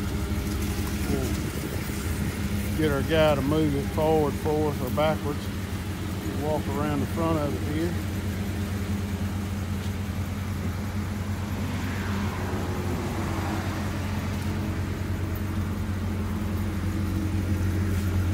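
A petrol SUV engine idles.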